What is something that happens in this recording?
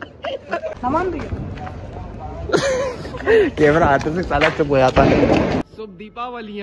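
Young men laugh and shout nearby.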